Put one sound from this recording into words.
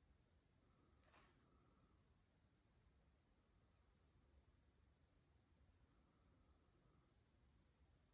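A tool softly rubs across paper.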